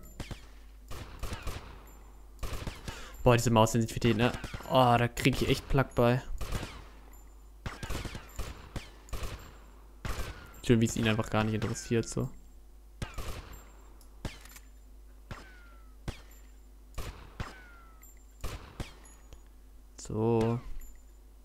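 A rifle fires sharp single shots again and again.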